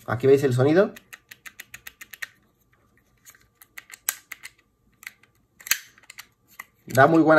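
Small plastic parts click and snap as they are handled.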